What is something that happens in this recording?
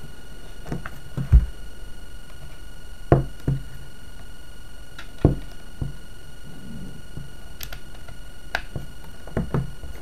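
A cable plug clicks into a socket.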